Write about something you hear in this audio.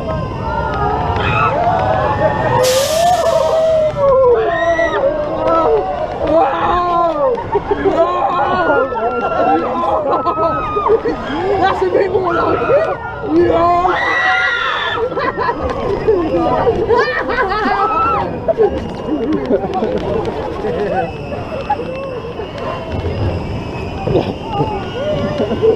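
A roller coaster rattles and rumbles along its track.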